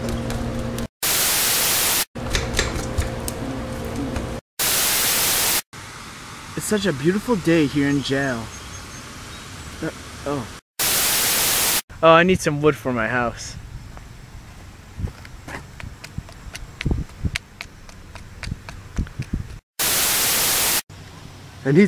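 Loud television static hisses in short bursts.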